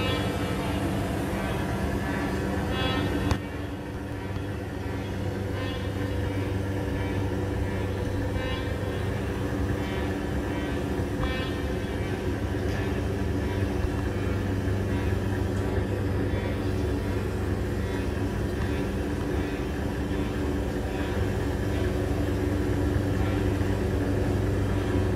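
A musician plays loud electronic music through loudspeakers.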